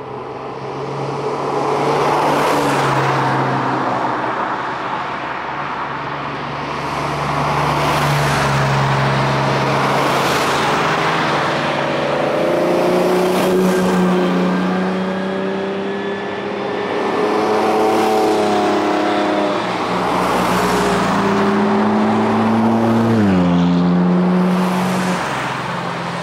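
Sports cars accelerate uphill past the listener one after another outdoors.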